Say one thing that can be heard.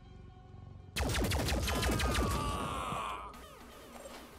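A mechanical gun fires a rapid burst of shots.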